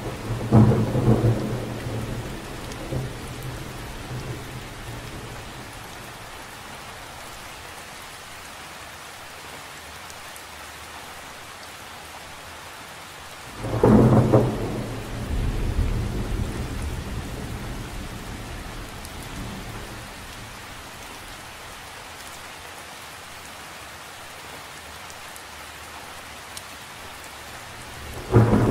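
Rain patters steadily on the surface of a lake outdoors.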